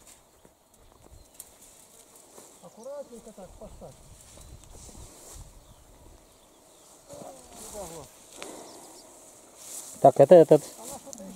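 Tall grass swishes and rustles underfoot as someone walks through it.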